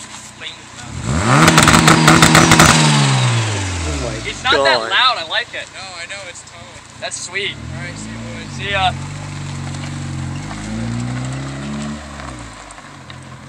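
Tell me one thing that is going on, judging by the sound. A sports coupe's engine revs hard as the coupe pulls away.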